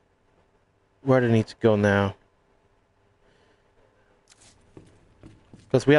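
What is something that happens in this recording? A young man talks with animation, close to a microphone.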